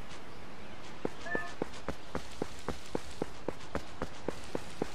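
Quick footsteps patter on soft ground.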